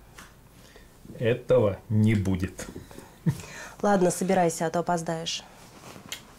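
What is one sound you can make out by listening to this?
A middle-aged man speaks calmly close by, with a light chuckle.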